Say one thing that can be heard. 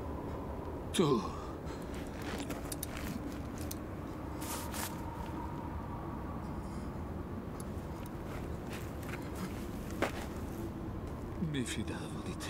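A man groans faintly.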